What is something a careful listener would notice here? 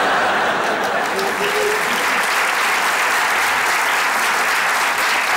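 A large audience laughs loudly.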